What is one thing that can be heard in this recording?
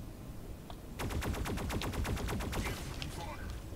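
A rapid burst of gunfire rattles.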